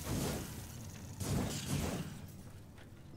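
A gun fires loudly in a burst.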